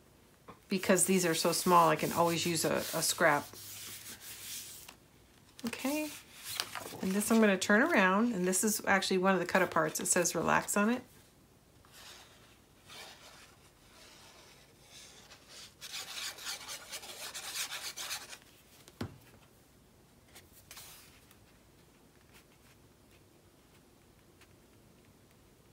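Paper rustles and crinkles softly.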